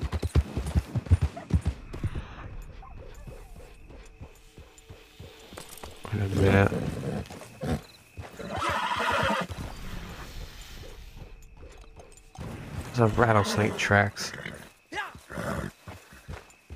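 A horse's hooves thud slowly on a dirt path.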